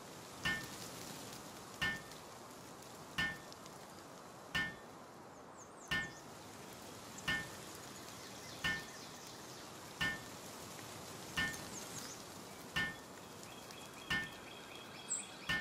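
A hammer strikes wood in regular, ringing blows.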